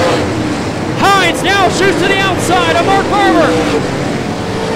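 Race car engines rise and fall sharply in pitch.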